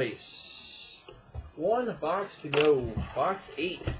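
A cardboard box is set down on a wooden table with a soft thud.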